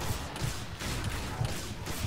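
Pistols fire rapid shots.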